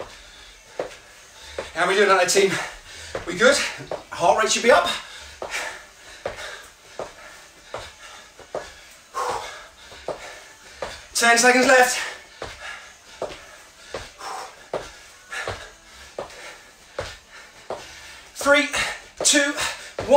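Sneakers thump and squeak on a wooden floor.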